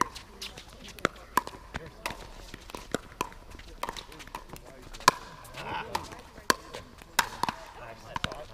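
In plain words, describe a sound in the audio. Paddles strike a plastic ball with sharp hollow pops in a quick rally outdoors.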